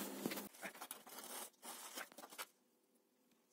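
Hands scrape and scoop loose sand.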